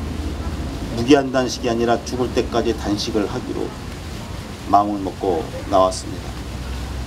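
A middle-aged man speaks earnestly into a microphone outdoors.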